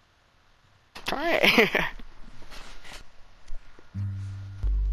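An acoustic guitar is strummed and plucked.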